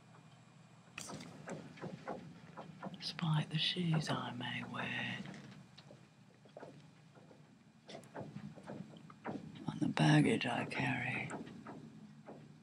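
Clothing rustles against a microphone as it is moved.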